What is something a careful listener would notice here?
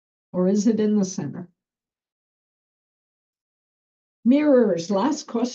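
An older woman speaks calmly over an online call.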